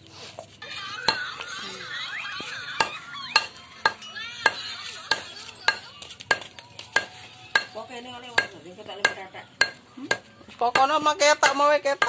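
A mallet knocks sharply and regularly.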